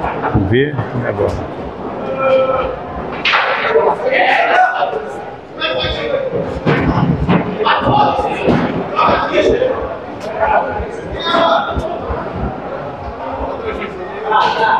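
A crowd of men chatters loudly.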